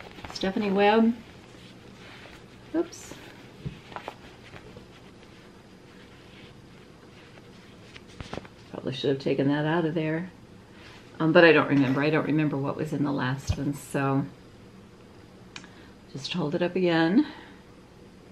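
An older woman speaks calmly and close by, in short phrases.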